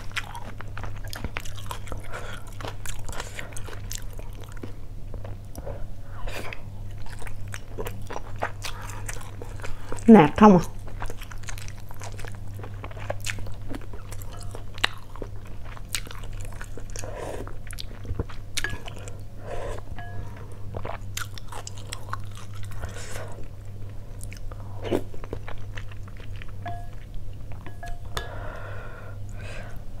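A woman chews food with wet smacking sounds close to a microphone.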